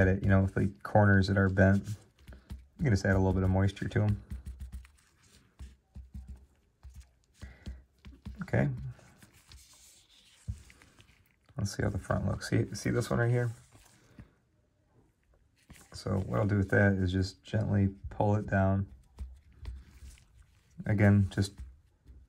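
Gloved hands slide a card softly across a smooth surface.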